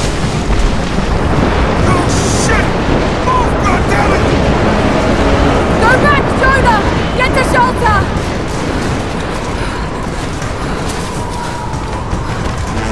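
An avalanche rumbles and roars loudly.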